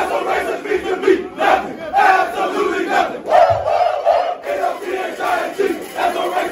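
A crowd of young men chants and shouts loudly together in an echoing room.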